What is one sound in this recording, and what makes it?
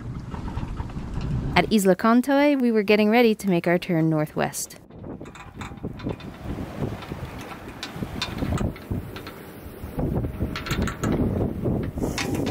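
Wind blows and water splashes against a moving boat.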